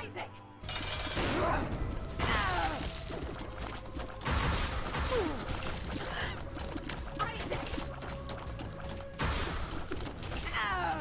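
Game sound effects burst and whoosh loudly.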